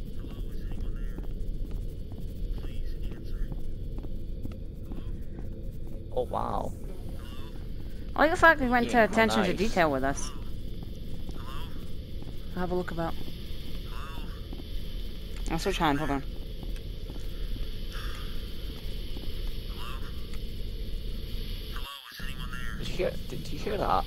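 Footsteps pad steadily over soft ground.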